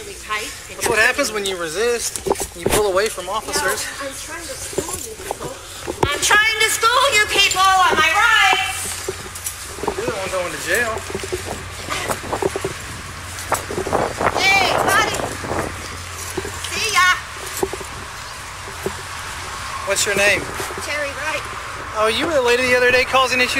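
An elderly woman talks agitatedly, very close by.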